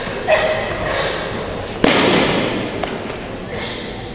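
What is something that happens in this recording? A body thuds onto a floor mat.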